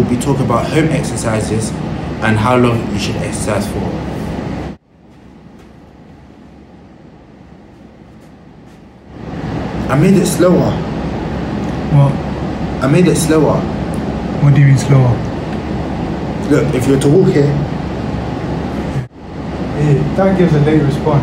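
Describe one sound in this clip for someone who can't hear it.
A young man speaks calmly and clearly, close to the microphone.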